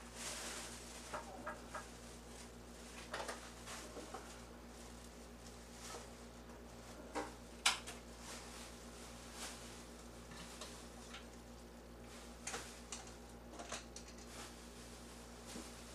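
A spoon scrapes and scoops the flesh of a melon.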